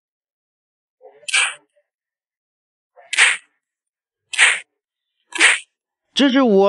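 Sharp whooshing hit effects burst out several times.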